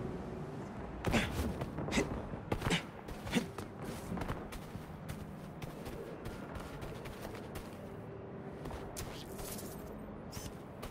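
Quick footsteps run across the ground.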